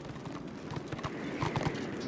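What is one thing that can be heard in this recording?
A horse gallops, its hooves thudding on the ground.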